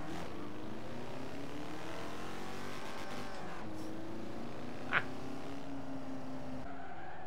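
A small car engine hums and revs steadily as it drives.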